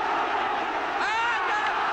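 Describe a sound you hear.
A man in the crowd shouts loudly.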